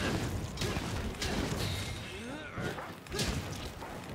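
Metal weapons clang against a hard hide.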